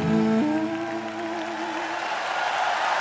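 A young man sings a final held note through a microphone.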